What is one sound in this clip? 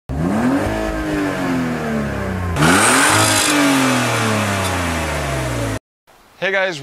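A car engine revs high and falls back, twice.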